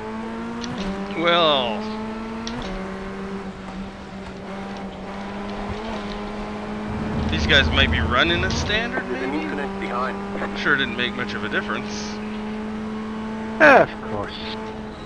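Other racing cars roar past close by.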